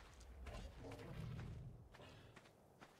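A large creature growls deeply.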